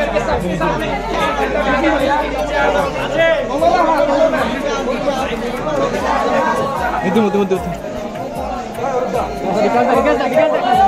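A crowd of young men and women talk and shout over one another close by.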